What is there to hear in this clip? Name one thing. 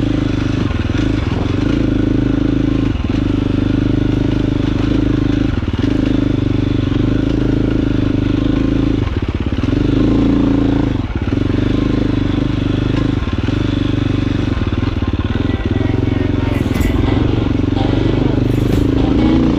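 A dirt bike engine drones loudly up close, revving up and down.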